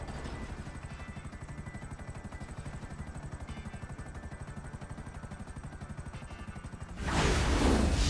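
Helicopter rotor blades chop rapidly and steadily.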